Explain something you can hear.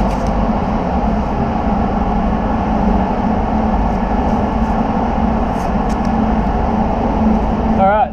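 Masking tape is pulled off a roll and torn.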